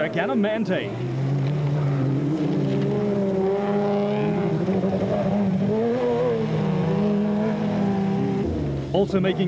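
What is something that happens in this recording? An off-road engine roars and revs as vehicles drive over rough ground.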